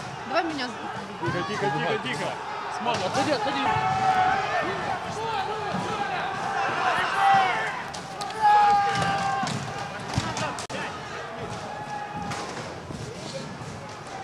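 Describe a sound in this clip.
A crowd of men shout and yell outdoors.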